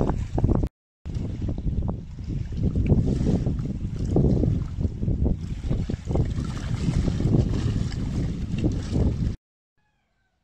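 Choppy water laps against a shore.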